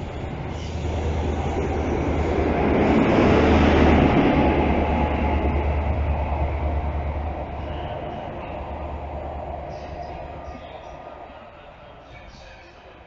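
A train rushes past close by with a loud roar, then fades into the distance.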